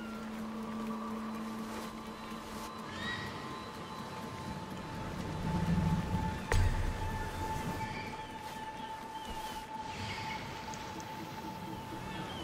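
Waves lap gently against a harbour shore.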